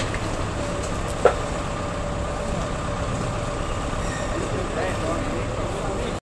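Men talk quietly in the background outdoors.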